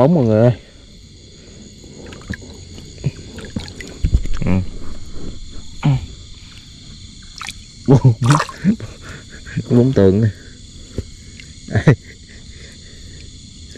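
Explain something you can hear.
Water splashes as a fish is pulled up and handled.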